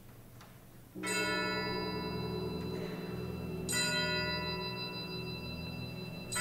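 A choir sings along with an orchestra.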